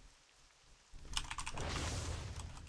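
Thunder cracks and rumbles.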